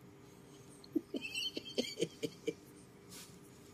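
A middle-aged man laughs softly close by.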